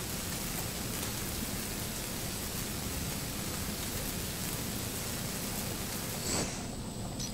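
A cutting torch hisses steadily.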